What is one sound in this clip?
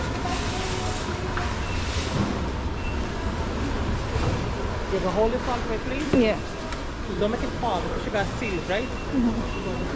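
Shoppers chatter in the background of a busy indoor space.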